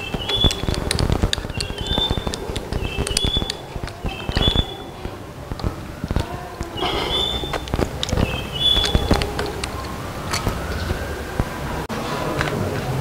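A ratchet wrench clicks rapidly as bolts are loosened.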